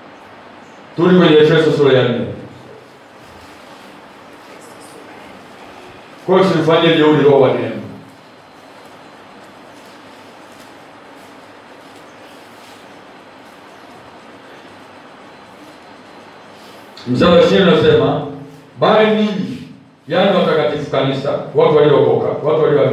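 A man speaks calmly, close by, in short bursts with pauses.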